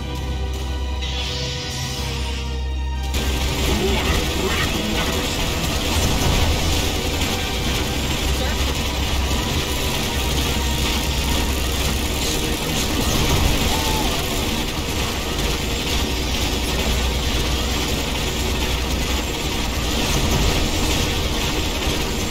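Gunfire rattles and explosions boom in a steady battle.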